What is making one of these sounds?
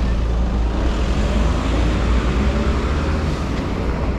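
A truck engine rumbles close by.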